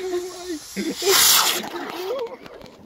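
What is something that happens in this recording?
A small firework hisses and fizzes loudly across water.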